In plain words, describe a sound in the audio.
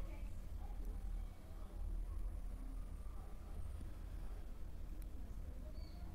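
A lighter clicks as it is struck.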